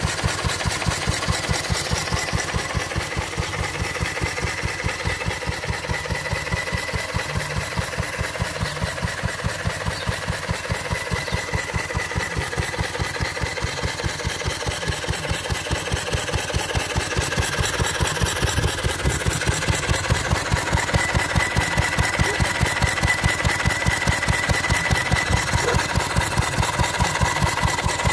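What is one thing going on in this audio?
A small engine runs close by with a fast, steady chugging beat.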